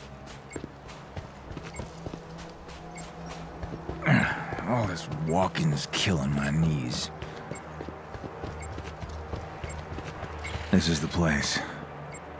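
Footsteps crunch quickly over dry ground and grass.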